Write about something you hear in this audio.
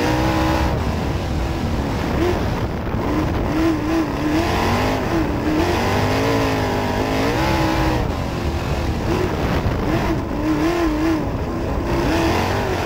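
A race car engine roars loudly close by, revving up and down through the turns.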